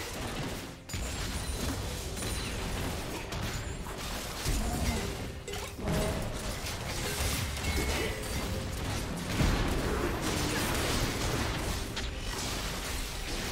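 Magic spells crackle and blast in a busy fantasy battle.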